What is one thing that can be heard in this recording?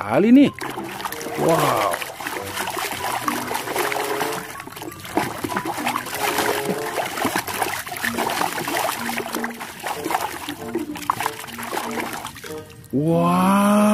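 A hand sloshes and squelches through thick slime.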